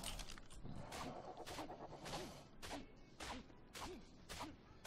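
Heavy blows thud repeatedly into a carcass.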